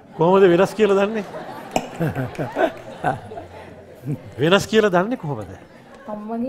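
A man speaks animatedly and playfully through a microphone.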